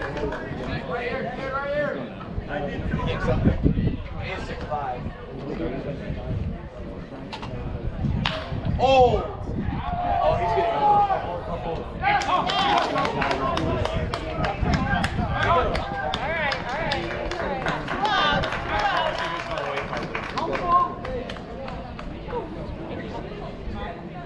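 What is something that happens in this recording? A crowd of spectators chatters nearby, outdoors.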